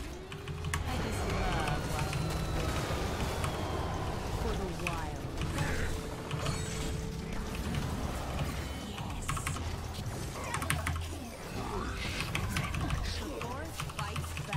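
Game combat sounds clash and crackle with spell effects.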